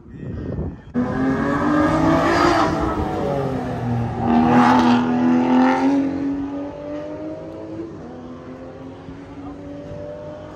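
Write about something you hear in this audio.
A sports car engine roars loudly as the car accelerates past.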